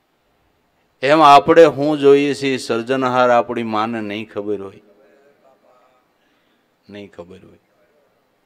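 An elderly man speaks calmly into a microphone, heard through loudspeakers in a large echoing hall.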